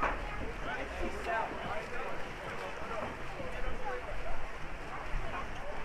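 Young men shout to each other across an outdoor pool.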